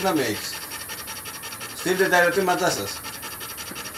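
A man speaks briefly and calmly nearby.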